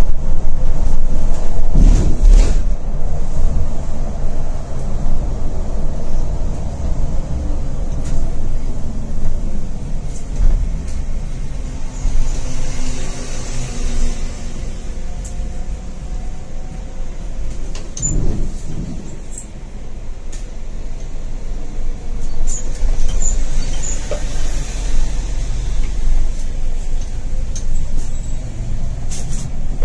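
The diesel engine of a coach drones from inside the cab while cruising.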